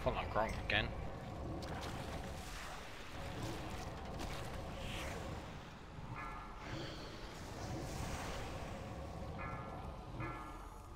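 Spell effects crackle and whoosh during a fight.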